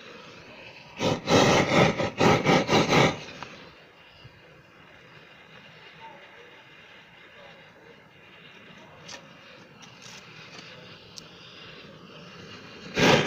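A gas torch roars in short bursts close by.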